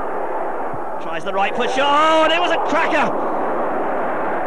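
A large crowd cheers loudly as a goal is scored.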